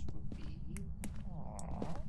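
Footsteps thud softly across a floor.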